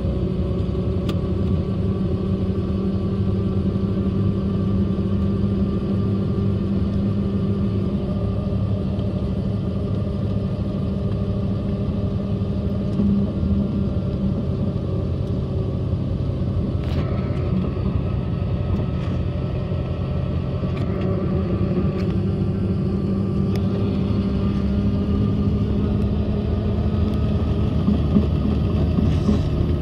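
A helicopter engine drones steadily from inside the cabin.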